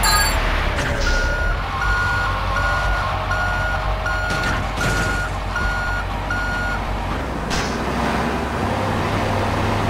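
A fire truck engine drones as the truck drives along.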